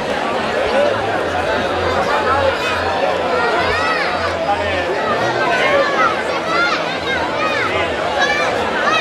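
A drum beats steadily nearby.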